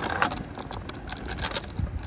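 Bicycles roll past nearby.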